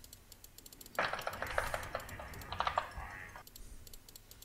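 Magic blasts and sword hits crackle and clash in a fierce fight.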